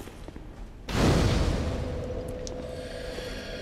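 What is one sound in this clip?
A fire ignites with a loud whoosh.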